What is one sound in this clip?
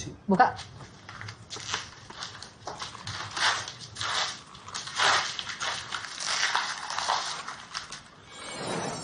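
Paper rustles and tears as a package is unwrapped.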